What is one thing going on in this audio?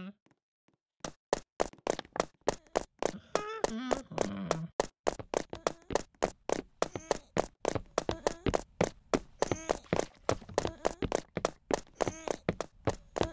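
Quick footsteps patter steadily across a hard floor.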